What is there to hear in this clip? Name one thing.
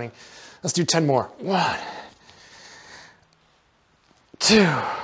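A man speaks loudly and with effort close by.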